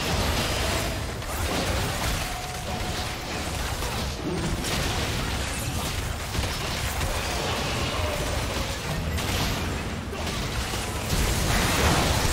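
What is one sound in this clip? Video game spell effects crackle and burst in a fast battle.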